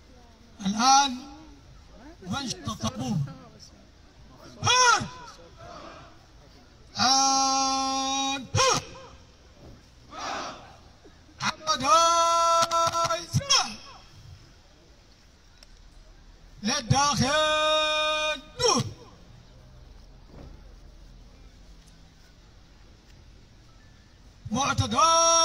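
A man shouts drawn-out drill commands outdoors.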